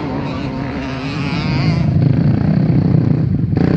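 Quad bike engines roar nearby.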